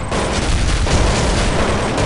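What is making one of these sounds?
A gun fires a burst of rapid shots.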